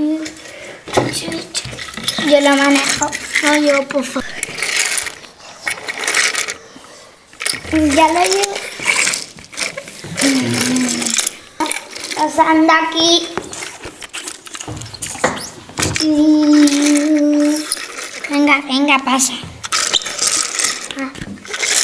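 Plastic toys knock and clatter on a hard floor.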